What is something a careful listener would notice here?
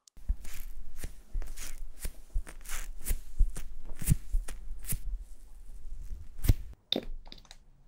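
A makeup sponge taps and rubs close up.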